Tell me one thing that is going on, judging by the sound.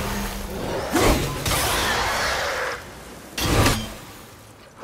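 An axe strikes with a heavy thud.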